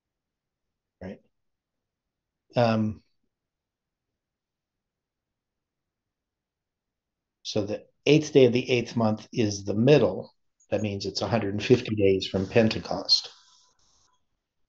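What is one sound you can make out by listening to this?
A middle-aged man speaks calmly and closely into a microphone, with pauses.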